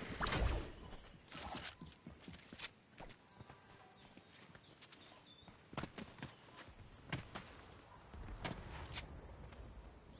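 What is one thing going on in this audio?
Footsteps patter on the ground in short bursts.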